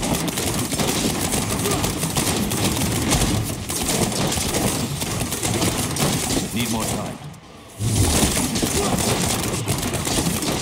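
Magic blasts crackle and explode in rapid bursts.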